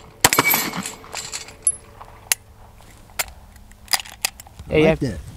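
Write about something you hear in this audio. A pistol clicks and clacks sharply as a magazine is changed.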